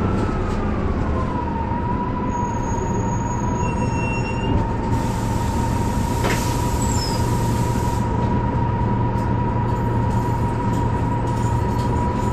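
A bus engine idles with a low, steady rumble and a constant whine.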